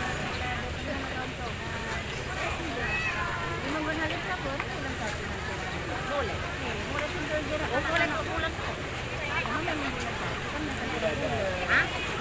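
A crowd of men and women chatter nearby, outdoors.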